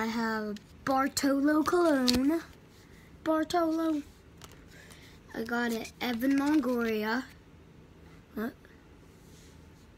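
Cards flick and shuffle in hands.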